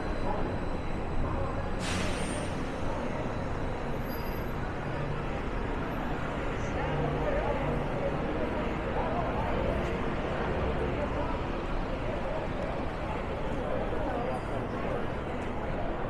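A steady murmur of a busy street fills the air.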